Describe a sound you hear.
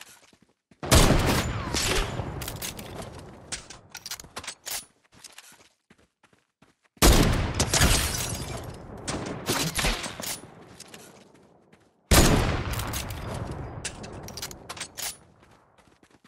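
A sniper rifle fires three loud shots that echo and fade.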